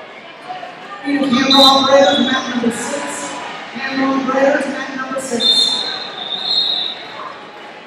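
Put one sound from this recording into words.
Spectators cheer and shout from the sidelines.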